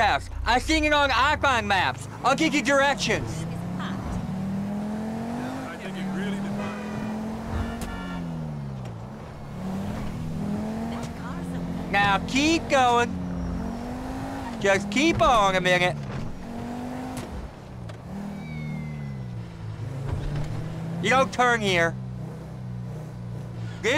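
A sports car engine revs and roars, rising and falling in pitch as it shifts gears.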